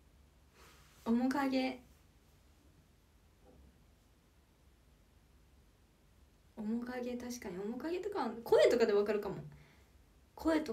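A young woman speaks softly and close to a microphone, in short bursts.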